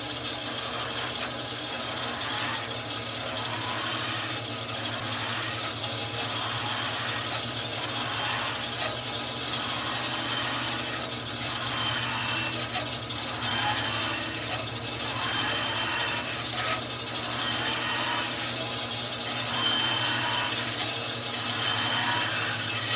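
A band saw blade cuts through wood with a buzzing whine, in repeated passes.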